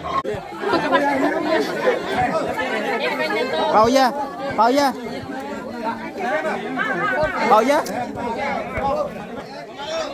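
Several men and women talk around a stall.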